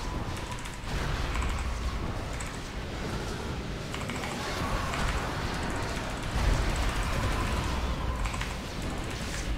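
Magic spells whoosh and crackle in a video game.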